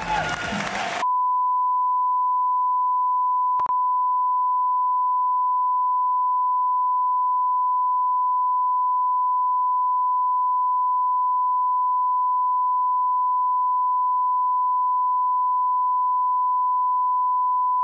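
A steady, high-pitched test tone sounds without a break.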